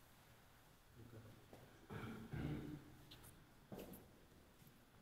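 A man speaks softly, close by.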